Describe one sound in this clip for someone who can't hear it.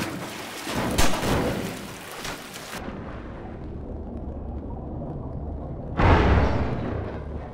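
A barrel bursts with a loud, echoing explosion.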